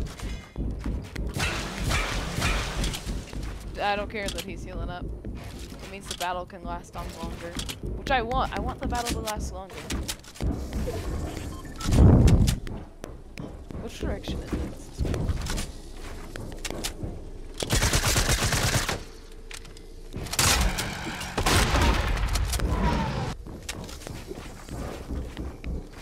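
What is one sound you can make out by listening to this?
Building pieces thud and snap into place in quick bursts in a video game.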